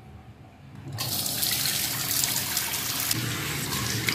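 Water runs from a tap into a basin.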